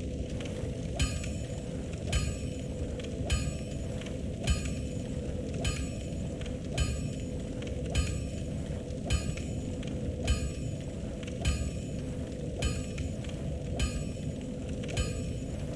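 A hammer strikes metal on an anvil in a slow, steady rhythm.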